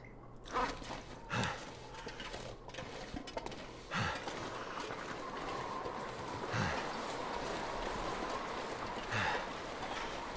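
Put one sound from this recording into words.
Footsteps crunch slowly on snow.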